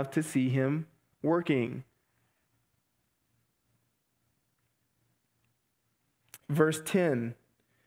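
A man speaks calmly into a headset microphone, with pauses.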